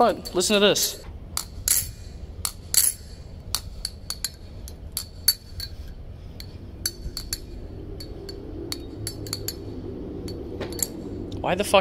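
A metal folding knife clicks and clacks as it is flipped open and shut.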